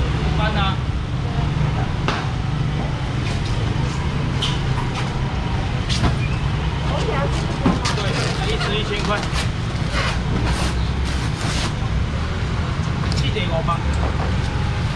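A busy crowd murmurs and chatters all around.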